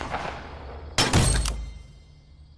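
Loot items burst out onto the ground with a loud whooshing pop.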